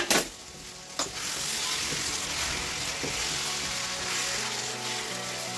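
A utensil scrapes and stirs in a metal pan.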